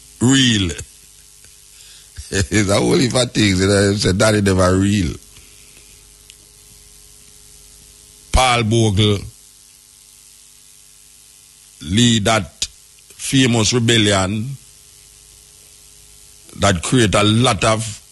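A man speaks with animation into a microphone, in bursts with pauses.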